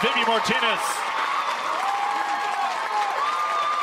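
A crowd cheers in a stadium.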